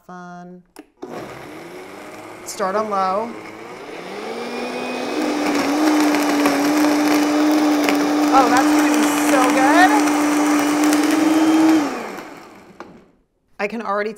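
A blender whirs loudly, then winds down.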